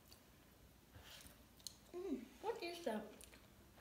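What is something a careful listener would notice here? A boy chews and slurps food noisily.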